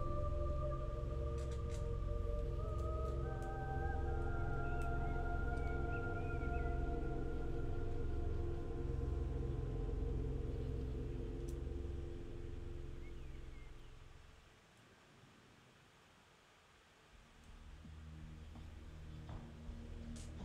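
Small plastic bricks click and rattle as they are handled.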